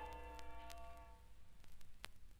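A ringing musical note plays from a record and fades away.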